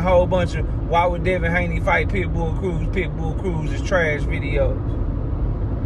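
A man speaks with animation close to a phone microphone.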